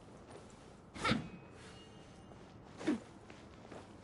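A sword swishes through the air with a bright magical whoosh.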